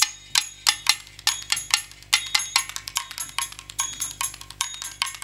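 Drums beat in a quick, sharp rhythm.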